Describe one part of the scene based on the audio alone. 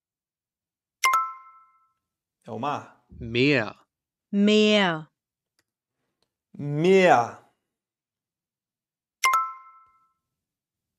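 A short bright chime rings.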